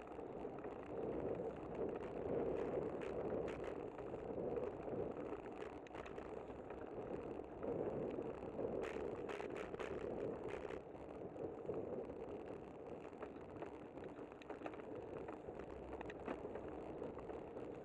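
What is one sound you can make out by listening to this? Wind rushes steadily past, loud and buffeting.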